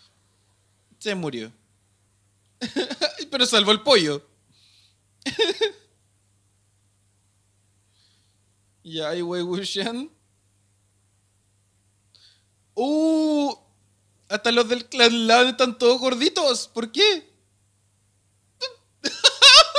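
A young man talks with animation into a close microphone, with pauses.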